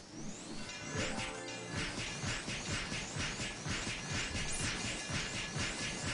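A video game spell crackles and rings loudly.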